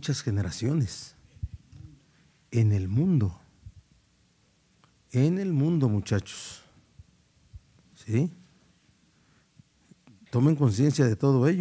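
A middle-aged man speaks calmly into a microphone, in short bursts with pauses.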